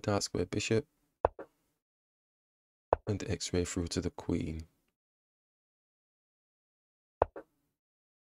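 A chess piece clicks into place on a board.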